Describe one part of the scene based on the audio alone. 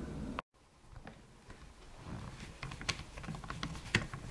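A screwdriver clicks and scrapes faintly as it turns a small screw.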